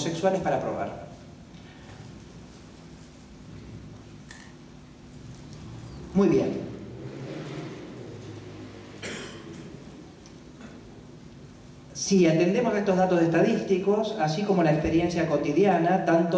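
A man reads out calmly into a microphone.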